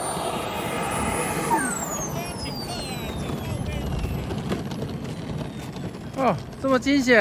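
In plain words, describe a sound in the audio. A small jet engine whines loudly and slowly drops in pitch.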